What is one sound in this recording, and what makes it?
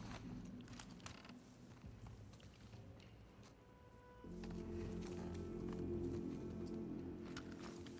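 Footsteps shuffle over debris and grass.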